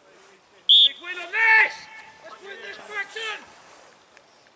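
A man shouts from a distance outdoors.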